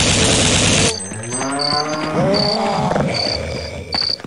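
A large beast bellows and groans as it falls.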